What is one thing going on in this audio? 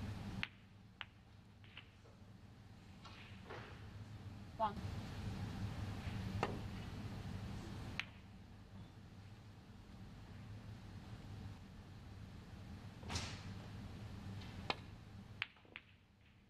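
Snooker balls knock together and thud into a pocket.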